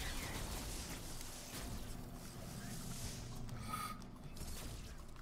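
Electronic game sound effects whoosh and chime.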